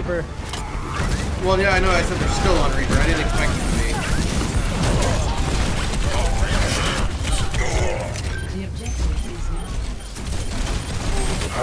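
A grenade launcher fires and shells burst with heavy booms.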